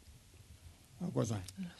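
An elderly man speaks calmly into a microphone.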